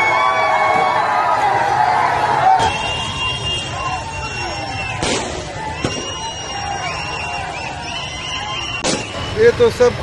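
A large crowd of young men cheers and shouts loudly outdoors.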